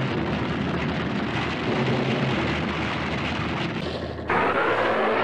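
Rocks rumble and crash down in a landslide.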